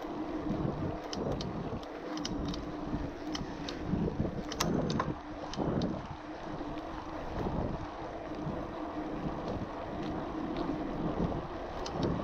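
Bicycle tyres roll steadily over a rough path.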